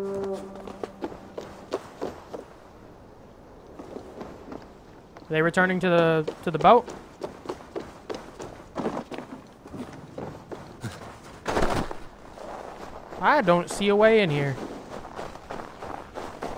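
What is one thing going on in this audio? Footsteps thud on a wooden roof and crunch through snow.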